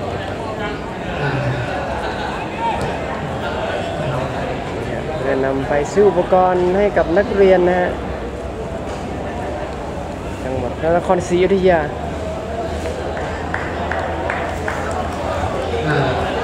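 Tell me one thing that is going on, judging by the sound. Several men talk and murmur nearby.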